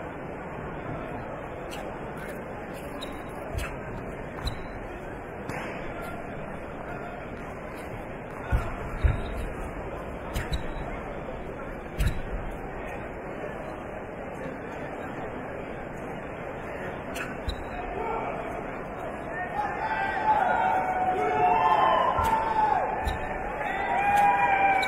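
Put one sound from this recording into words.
A large crowd murmurs steadily in an echoing hall.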